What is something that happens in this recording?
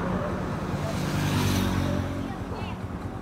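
A motorbike passes by on the road.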